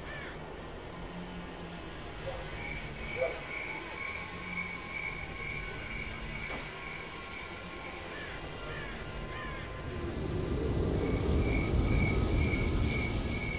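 Birds call overhead outdoors.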